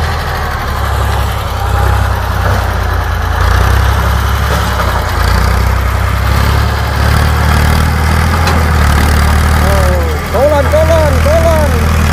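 A tractor diesel engine chugs steadily close by, with a deep throbbing rumble.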